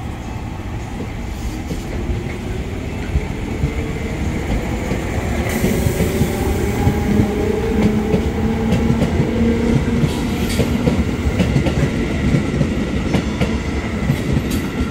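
A train's electric motors whine, rising and falling in pitch.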